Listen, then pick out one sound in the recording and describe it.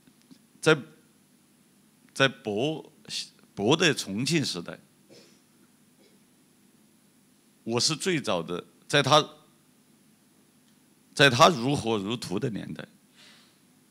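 A middle-aged man speaks calmly into a microphone, in pauses.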